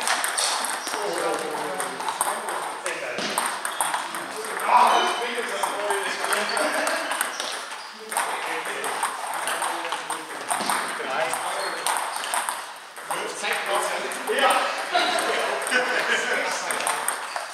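A table tennis ball bounces on a table.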